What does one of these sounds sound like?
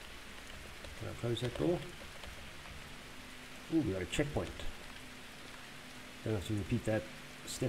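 A young man talks in short bursts close to a microphone.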